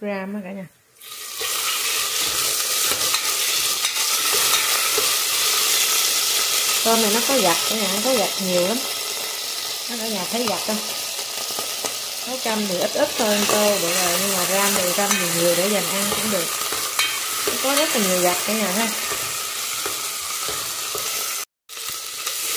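Shrimp sizzle and crackle loudly in hot oil.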